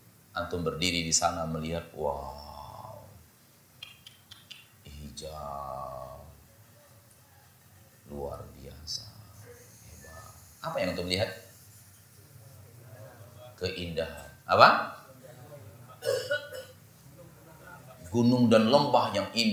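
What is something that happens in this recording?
A man speaks calmly into a microphone, his voice echoing in a large hall.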